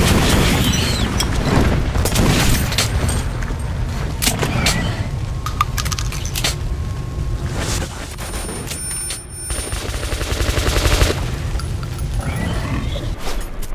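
A gun fires loud shots that echo.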